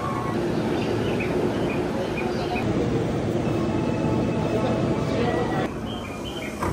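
A train hums and rumbles close by.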